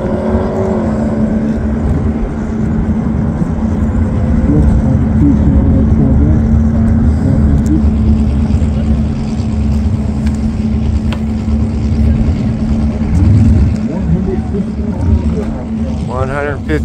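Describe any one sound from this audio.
A sports car engine roars loudly as the car speeds away into the distance.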